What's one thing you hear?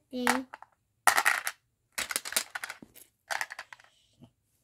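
Plastic pieces click and rattle as they are moved on a board.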